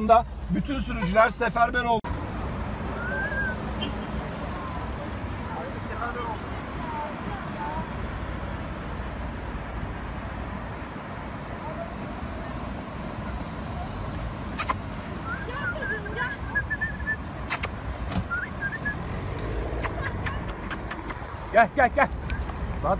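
Traffic rumbles steadily along a busy road.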